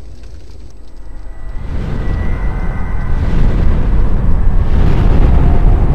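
A deep rumbling roar echoes low and grows louder.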